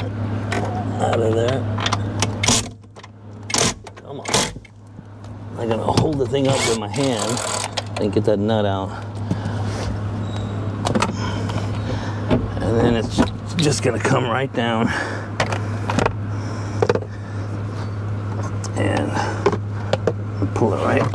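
Plastic and metal parts click and rattle as hands handle them.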